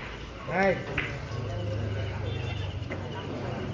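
Billiard balls knock together.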